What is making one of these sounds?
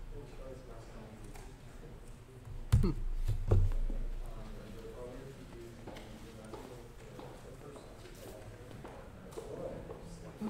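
A man lectures calmly through a microphone.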